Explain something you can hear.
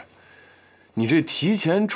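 A man speaks calmly and quietly nearby.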